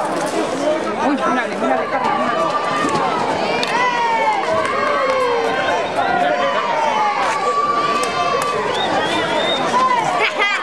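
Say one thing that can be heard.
A crowd of men and women shouts and calls out loudly outdoors.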